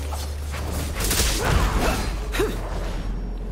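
Spells and blows crash and burst in a fierce fight.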